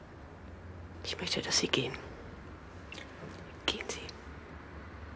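A woman speaks quietly and softly.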